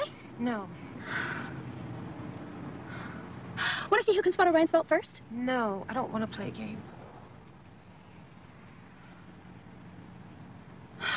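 A second young woman answers wearily nearby.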